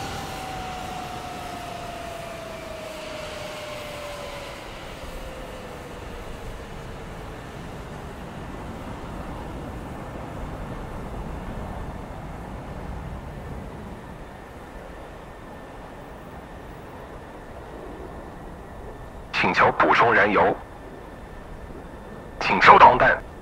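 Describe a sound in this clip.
A jet engine whines steadily and slowly winds down in pitch.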